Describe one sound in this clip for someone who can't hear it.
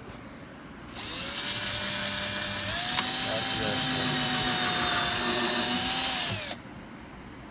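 A cordless drill whirs as it drives a screw into wood.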